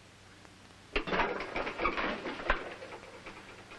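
Papers rustle as a man handles them.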